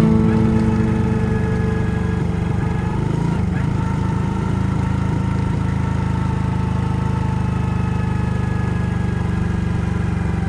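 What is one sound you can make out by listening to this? A motorcycle engine putters steadily at low speed.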